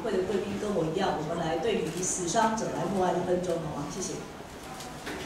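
A man speaks calmly over a loudspeaker in a room with some echo.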